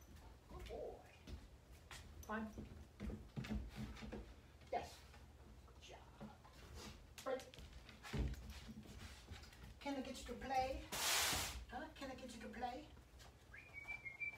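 A dog's paws patter on a tiled floor.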